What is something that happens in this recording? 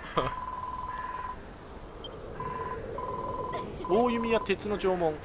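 Rapid high beeps chirp as game dialogue text scrolls.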